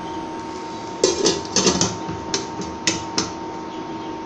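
A metal lid clinks and scrapes onto a steel pot.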